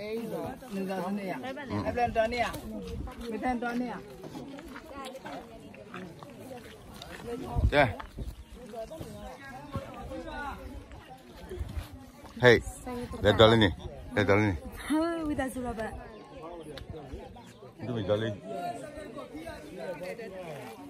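Several women chat and laugh nearby outdoors.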